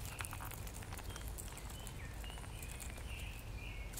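A chipmunk gnaws a peanut shell with small crunching clicks.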